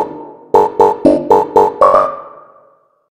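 Rapid electronic game beeps play in a quick burst.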